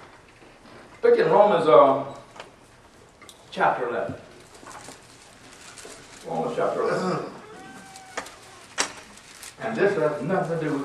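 An elderly man speaks calmly in short bursts, slightly echoing in a room.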